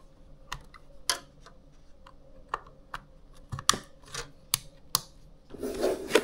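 Plastic parts click and snap as a card is fitted into a slot.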